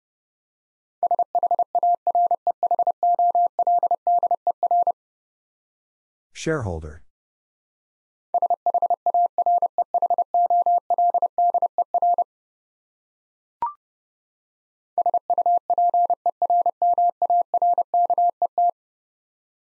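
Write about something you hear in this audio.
Morse code beeps in short and long bursts of a steady tone.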